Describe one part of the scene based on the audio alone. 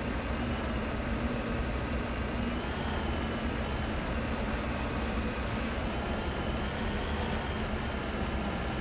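A vehicle's engine hums steadily as it drives.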